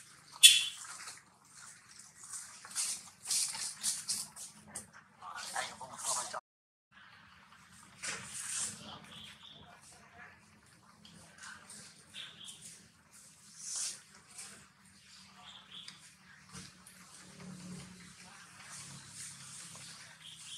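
Dry leaves rustle and crackle as monkeys shift on the ground.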